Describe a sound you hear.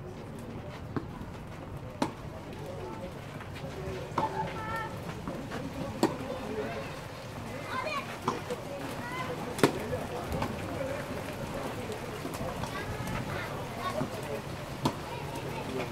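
Tennis balls are struck with rackets, making sharp pops outdoors.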